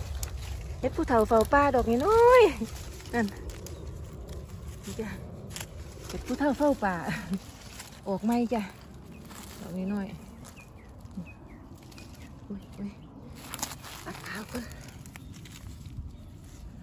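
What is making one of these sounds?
Dry leaves rustle and crackle as a hand digs among them.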